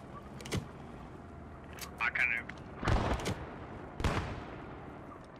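Heavy gunshots boom and echo outdoors.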